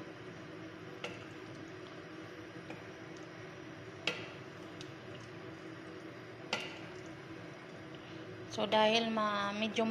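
A wooden spoon stirs and knocks against a metal pot.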